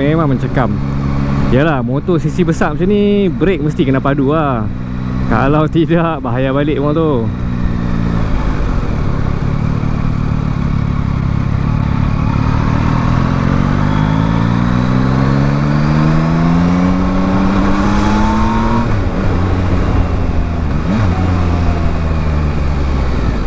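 A motorcycle engine hums and rises in pitch as it speeds up.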